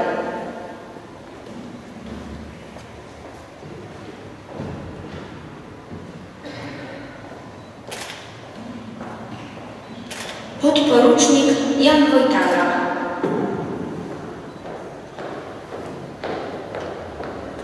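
A young woman reads out calmly through a microphone in a large echoing hall.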